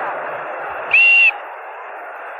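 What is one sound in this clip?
A referee blows a whistle sharply once.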